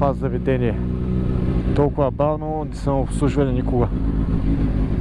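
A motorcycle engine idles and revs loudly close by.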